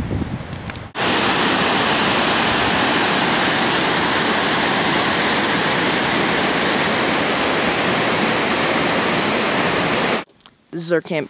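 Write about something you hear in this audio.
Water rushes loudly over rocks.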